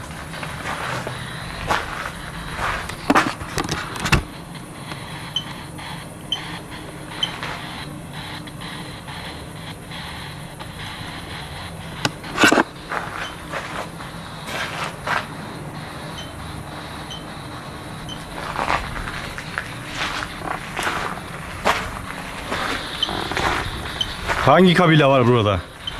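Footsteps crunch slowly on a stone path outdoors.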